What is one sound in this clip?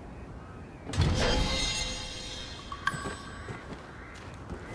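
A shimmering chime rings out and fades.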